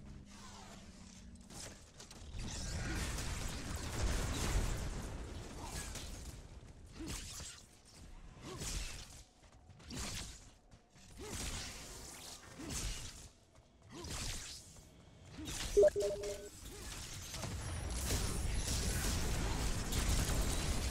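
Magic blasts crackle and whoosh in a fight.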